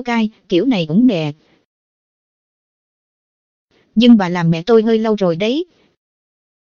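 A young child's voice speaks playfully, close and clear.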